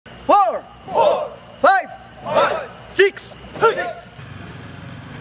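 A group of young men shout loud rhythmic calls in unison outdoors.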